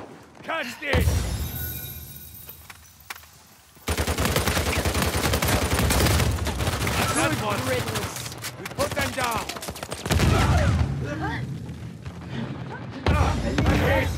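Rifle shots crack in a video game.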